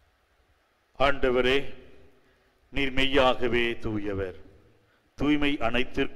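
An elderly man speaks solemnly through a microphone in a reverberant hall.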